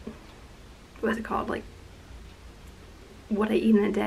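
A young woman speaks calmly and close up, in short bursts.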